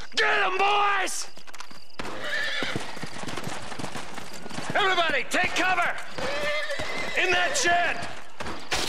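A man shouts commands loudly.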